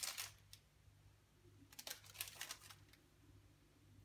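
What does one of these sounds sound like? Hands softly rustle and pat slices of food on a plate.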